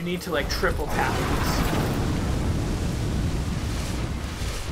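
Fire roars loudly.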